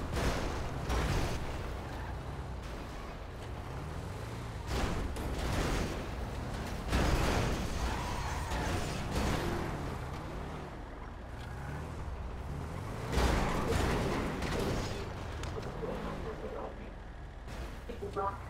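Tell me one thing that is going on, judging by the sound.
A vehicle engine rumbles and revs steadily.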